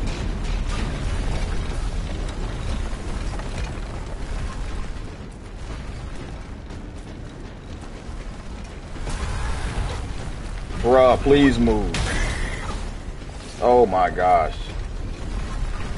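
A fire roars with a deep, steady rumble.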